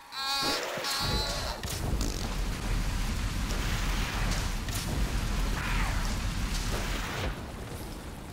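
A flamethrower roars in a long, loud blast of fire.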